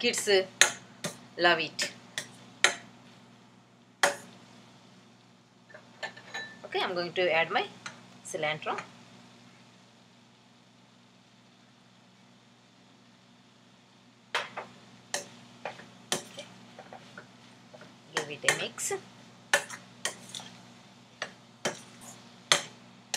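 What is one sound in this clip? A metal spatula scrapes and clinks against a metal pan.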